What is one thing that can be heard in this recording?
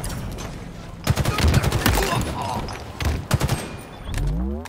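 Rifle fire rattles in bursts.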